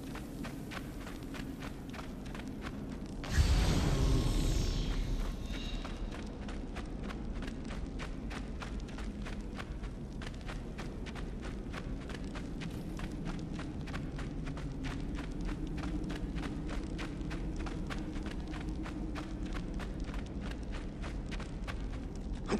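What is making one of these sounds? A torch flame crackles and flutters.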